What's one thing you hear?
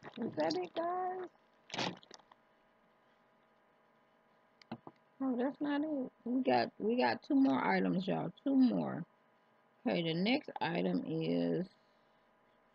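A woman talks close to a microphone.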